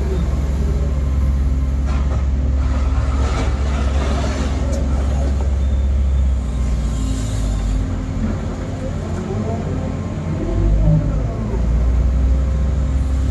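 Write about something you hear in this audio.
An excavator engine rumbles steadily from inside the cab.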